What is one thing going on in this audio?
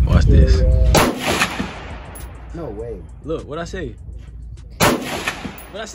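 A rifle fires single loud shots that echo across open ground.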